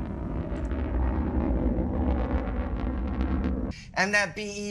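A rocket engine roars with a deep, steady rumble.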